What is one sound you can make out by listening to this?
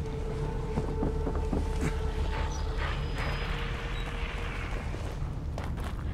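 A fire crackles and burns close by.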